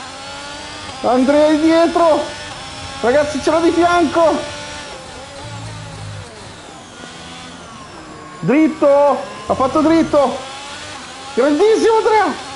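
A man talks loudly and with animation close to a microphone.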